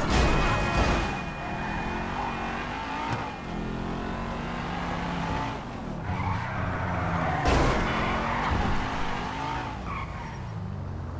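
A car engine revs loudly, rising and falling in pitch as it accelerates and shifts gears.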